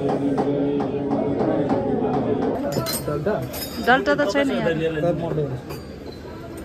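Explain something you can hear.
Men chant in a low, steady drone nearby.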